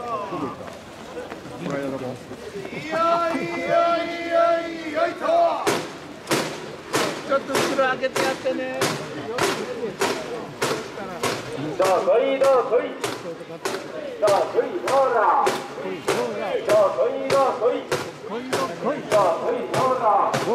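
A crowd of men chant and call out together outdoors.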